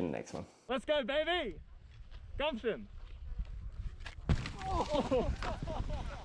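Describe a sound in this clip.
Skis scrape across hard snow.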